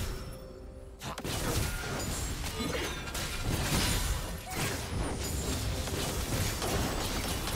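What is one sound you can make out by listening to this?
Game spell effects zap and whoosh during a fight.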